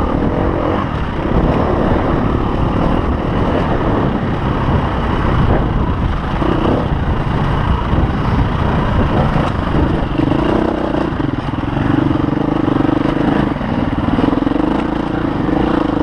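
A dirt bike engine roars up close, revving up and down.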